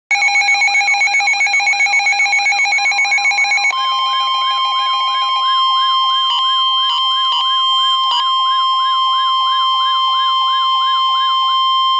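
A weather radio sounds a loud, rapidly warbling electronic alert tone.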